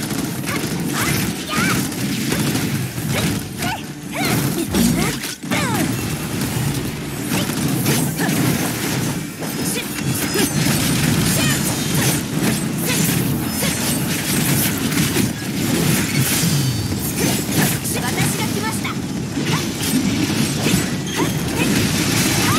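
Blades and blows strike rapidly in a fast fight.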